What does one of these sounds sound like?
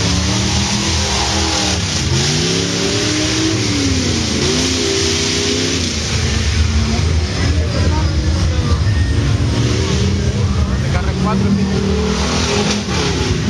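A rally car engine revs hard in the distance.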